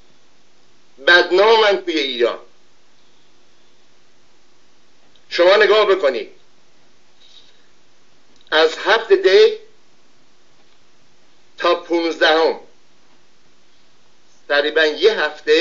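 An elderly man speaks calmly into a microphone in short bursts with pauses.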